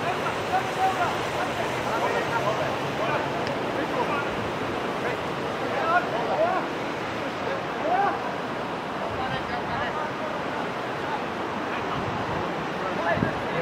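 Players shout to each other across an open field, outdoors in wind.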